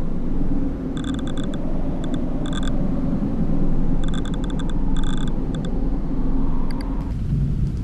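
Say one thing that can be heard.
Short electronic beeps sound in quick bursts.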